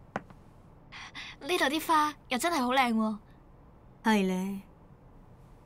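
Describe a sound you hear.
A young woman speaks brightly and close by.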